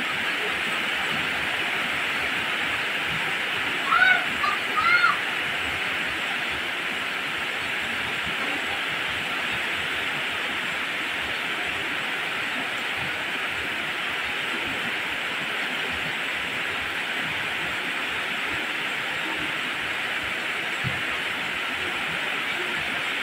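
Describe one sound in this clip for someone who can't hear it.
Heavy rain pours steadily onto leaves and the ground outdoors.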